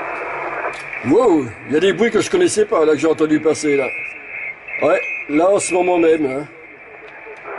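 A man talks over a radio, heard through its speaker.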